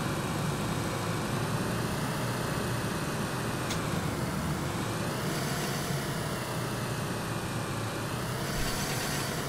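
A car engine hums steadily, rising and falling a little in pitch.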